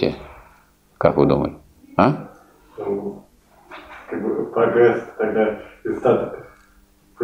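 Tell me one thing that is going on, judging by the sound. An elderly man speaks calmly in a quiet room.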